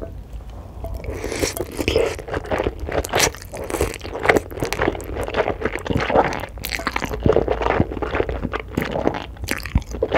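A woman slurps noodles loudly and close up.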